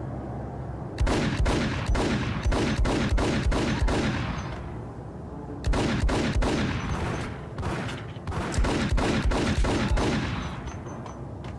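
A pistol fires in rapid shots that echo through a large hall.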